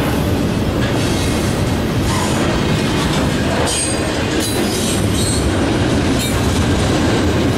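Train wheels squeal and clatter on the rails.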